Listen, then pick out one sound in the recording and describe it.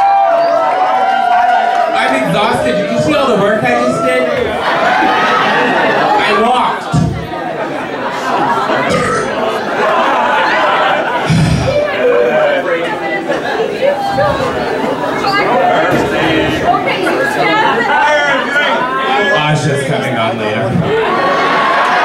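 A performer talks animatedly through a microphone over loudspeakers in a large room.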